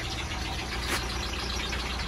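Steam hisses and sizzles from under a car.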